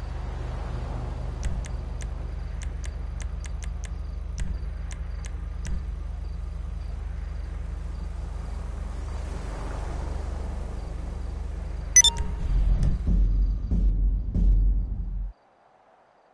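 A car engine hums low and steadily, then cuts off.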